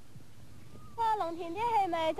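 A young boy shouts out loudly nearby.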